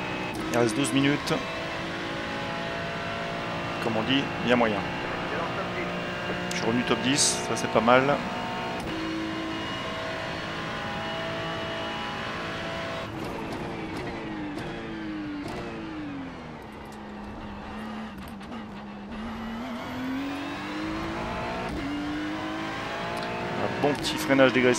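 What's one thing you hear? A race car engine roars steadily, dropping in pitch as it slows and rising again as it speeds up.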